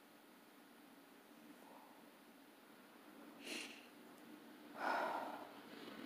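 A middle-aged woman yawns behind her hand.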